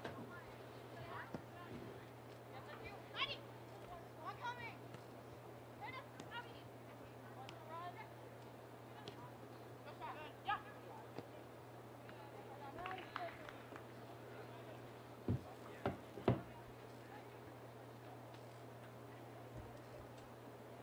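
A soccer ball is kicked with dull thumps.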